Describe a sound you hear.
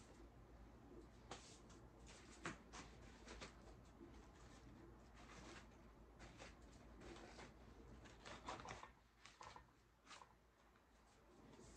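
Hands rustle and crinkle ribbon and artificial leaves.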